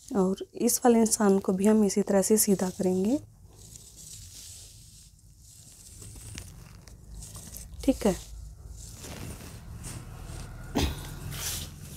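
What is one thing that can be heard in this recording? A metal ruler slides and taps on cloth.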